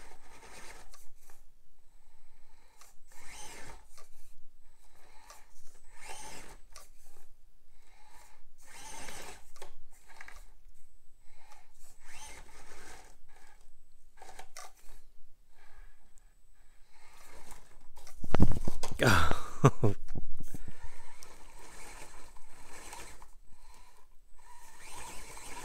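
Rubber tyres scrape and grind over rock.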